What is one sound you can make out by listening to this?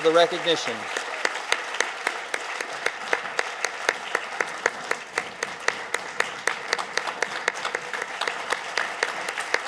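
An audience applauds steadily, with many hands clapping.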